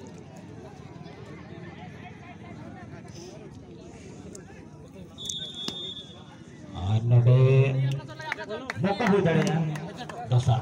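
A crowd of young men murmurs and chatters outdoors.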